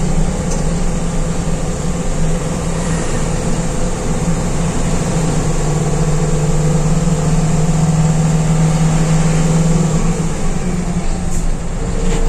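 A bus engine hums and drones steadily from inside the cabin.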